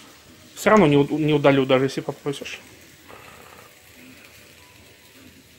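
Batter sizzles softly in a hot frying pan.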